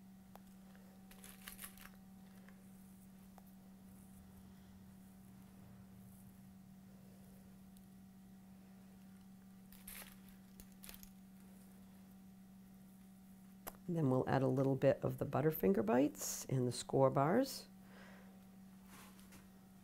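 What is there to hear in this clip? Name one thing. Fingers crumble soft cake pieces with faint rustles.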